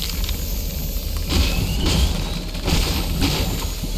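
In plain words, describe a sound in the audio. A pickaxe strikes a wooden wall repeatedly.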